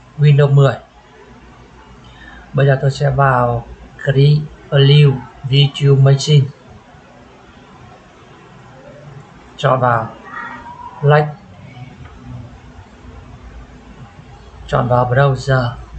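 A man talks calmly into a close microphone, with pauses.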